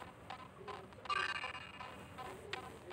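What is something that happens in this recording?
A bright electronic chime rings once.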